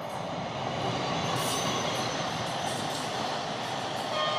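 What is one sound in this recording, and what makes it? Train wheels clatter over the rail joints.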